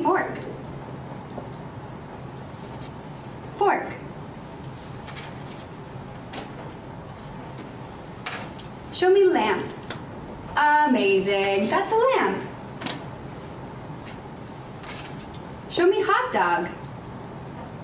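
A woman speaks calmly in short phrases, with pauses between them.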